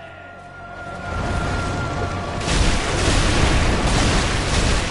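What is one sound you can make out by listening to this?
A deep rushing rumble builds up and grows loud.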